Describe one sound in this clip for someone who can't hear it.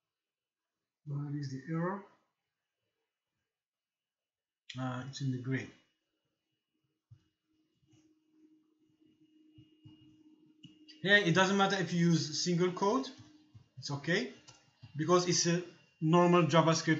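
A man speaks calmly and explains something close to a microphone.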